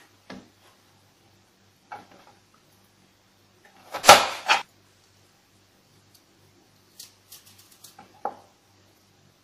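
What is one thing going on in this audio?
A knife cuts through bitter gourd on a plastic cutting board.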